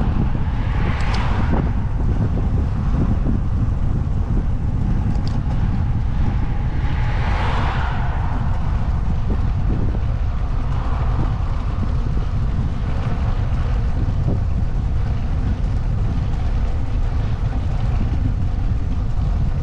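Wind buffets the microphone loudly throughout.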